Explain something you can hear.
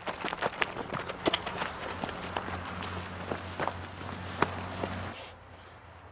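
Gunshots crack rapidly outdoors.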